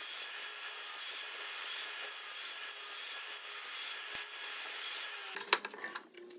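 A saw blade whirs steadily at high speed.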